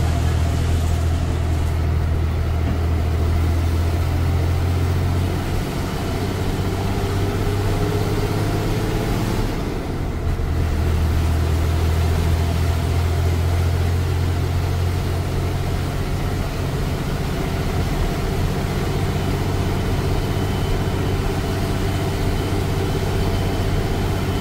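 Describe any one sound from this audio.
Wind rushes in through an open door.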